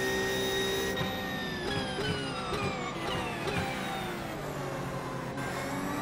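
A racing car engine winds down sharply as the car brakes for a corner.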